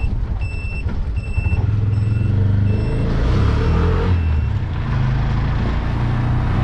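A small motor rickshaw engine putters and hums steadily.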